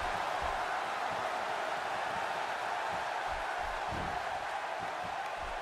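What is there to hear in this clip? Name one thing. Bodies thud on the wrestling mat.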